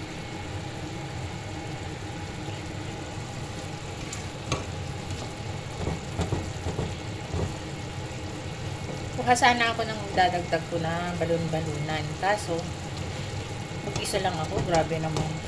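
A metal spatula scrapes and clinks against a pan while stirring.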